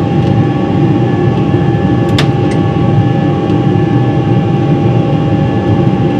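A switch clicks on an overhead panel.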